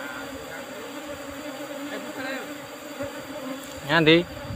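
Bees buzz in a thick swarm close by.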